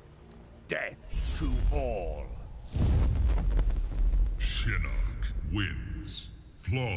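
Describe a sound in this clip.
A fireball roars and crackles.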